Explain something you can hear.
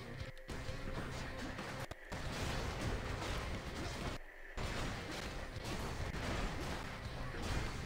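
Video game combat clashes and thuds.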